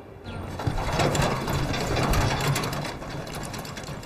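A rickshaw's wheels rattle past.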